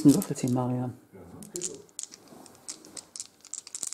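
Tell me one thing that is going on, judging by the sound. Dice rattle and clatter in a tray.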